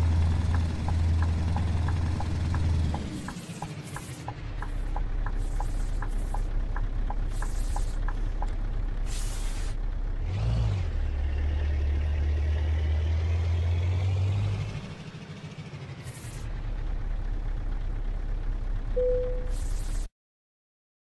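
A truck engine rumbles steadily, rising and falling as it changes speed.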